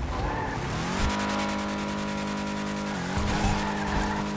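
A car engine starts and roars loudly.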